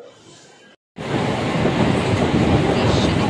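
A crowded train rumbles loudly along its tracks.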